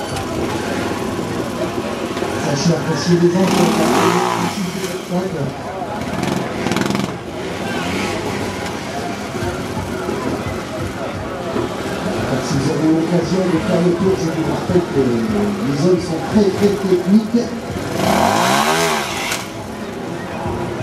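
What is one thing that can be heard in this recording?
A trials motorcycle engine revs in short, sharp bursts as the bike climbs over rocks.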